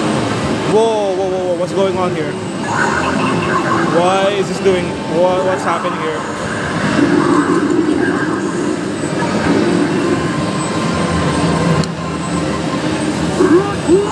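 An arcade game plays loud music and sound effects.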